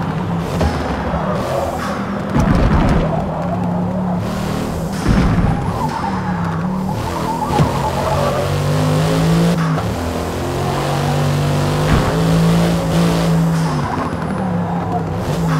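A car engine revs up and down through gear changes.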